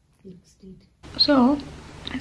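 A woman speaks quietly close by.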